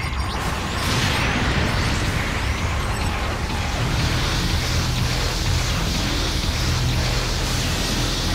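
Mech thrusters roar steadily.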